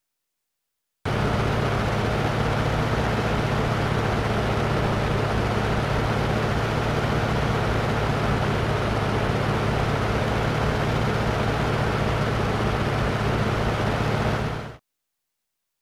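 Heavy military trucks rumble along a road with a low, steady engine drone.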